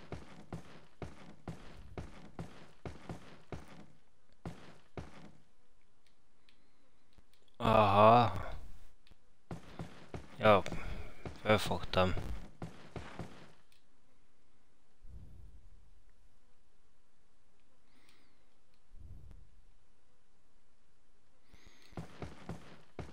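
Footsteps thud steadily on wooden floorboards.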